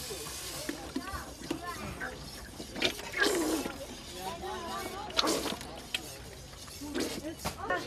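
Metal tins clink against a cooking pot.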